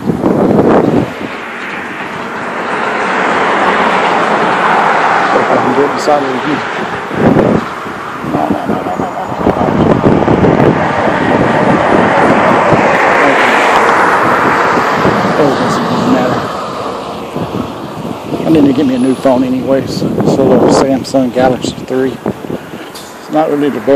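A middle-aged man talks close to a headset microphone outdoors.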